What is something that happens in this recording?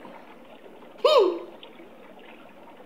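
A young man exclaims with a surprised, mocking tone, close by.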